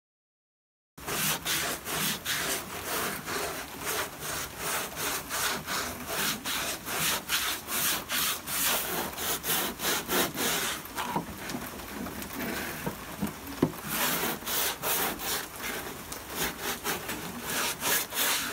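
A sanding block rasps back and forth over a hard surface in quick, steady strokes.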